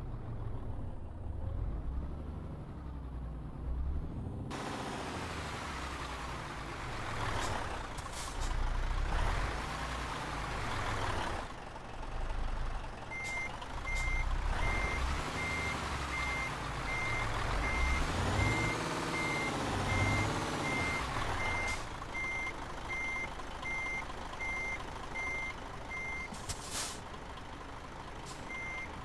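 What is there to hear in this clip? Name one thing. A truck engine rumbles low and steady.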